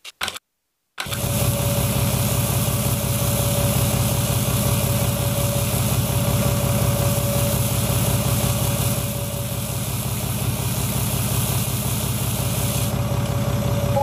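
Grain pours from a tipping trailer.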